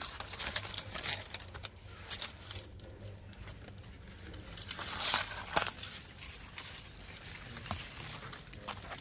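Leaves rustle as a hand brushes through them.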